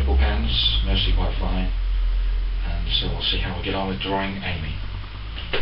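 A middle-aged man speaks calmly close by.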